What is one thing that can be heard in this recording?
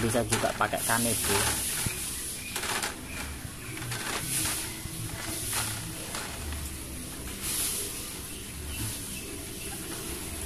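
A tissue rubs against a plastic grille.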